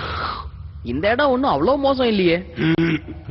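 A boy speaks with surprise.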